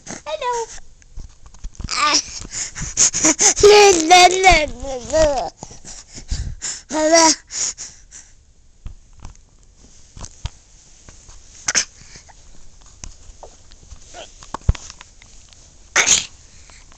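A baby babbles and squeals loudly close by.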